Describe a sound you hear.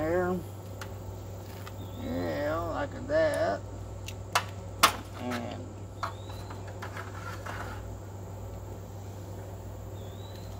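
Metal tongs clink and scrape against a grill grate.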